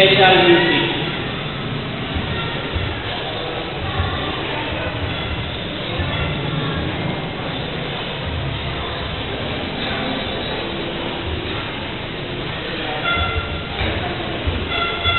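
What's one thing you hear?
A second young man speaks calmly into a microphone over loudspeakers.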